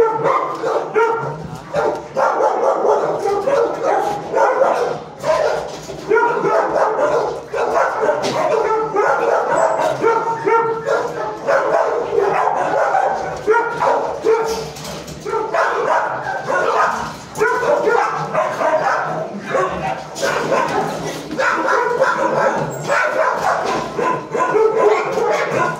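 A dog whines and whimpers close by.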